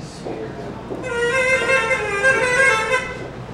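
A trumpet plays a wavering high tone.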